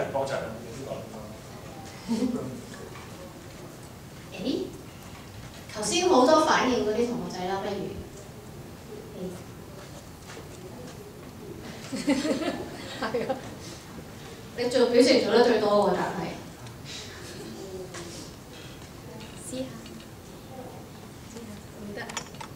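A woman speaks with animation into a microphone, heard through a loudspeaker.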